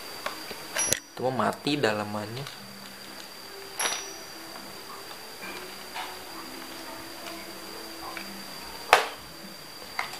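A plastic toy clicks and rattles in a young boy's hands.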